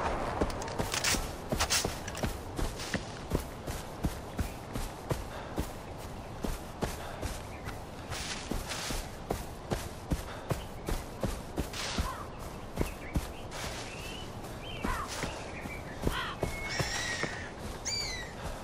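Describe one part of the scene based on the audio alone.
Footsteps rustle quickly through tall grass.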